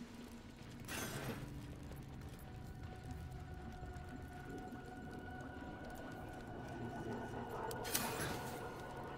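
Short interface clicks sound as menus open and close.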